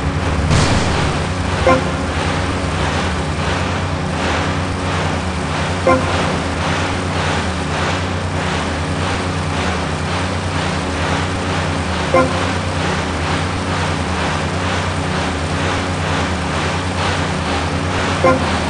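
A speedboat engine roars steadily.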